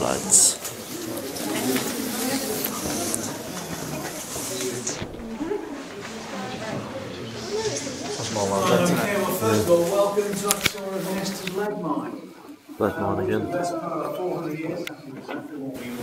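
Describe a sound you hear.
A crowd of men and women chatters nearby, echoing around them.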